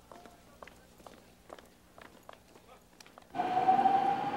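Footsteps tap softly on pavement.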